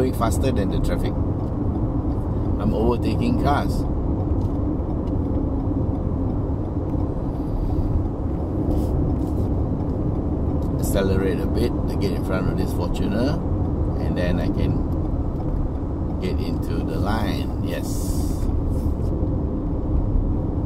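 A car engine hums steadily with road noise inside the cabin.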